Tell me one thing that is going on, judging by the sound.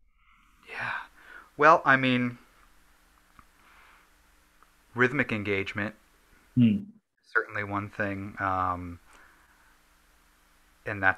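A young man speaks with animation through an online call microphone.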